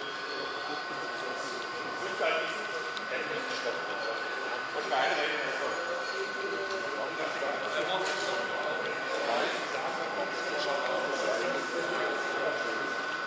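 Adult men and women chatter in a large echoing hall.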